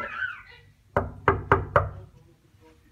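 A hand knocks on a wooden door.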